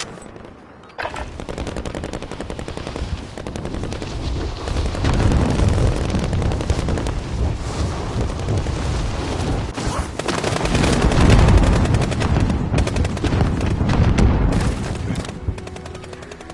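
Wind rushes loudly past during a fall through the air.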